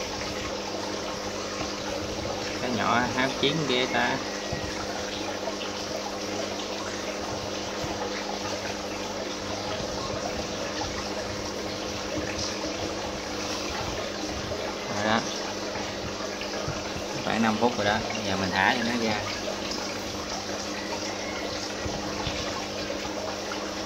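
An aquarium pump hums steadily.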